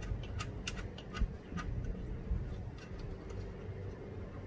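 A small plastic tool clicks and taps against a car panel.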